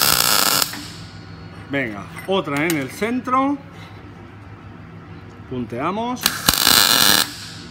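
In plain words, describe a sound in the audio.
An electric welding arc crackles and hisses loudly in short bursts.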